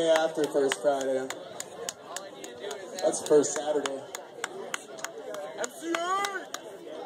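A drummer taps drumsticks in quick clicks.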